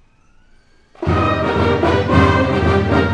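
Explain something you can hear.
A school band starts playing loudly.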